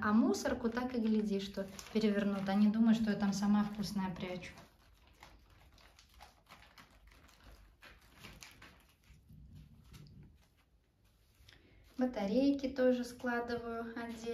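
Plastic packets rustle and crinkle as rats scamper over them.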